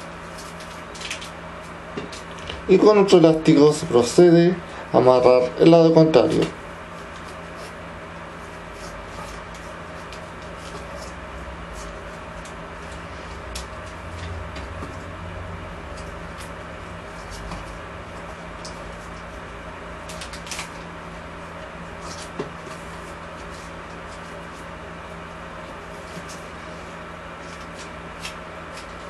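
Paper crinkles and rustles softly as hands twist it.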